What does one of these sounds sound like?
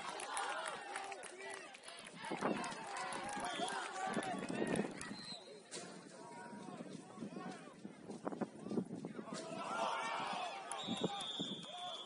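Many voices chatter and shout outdoors.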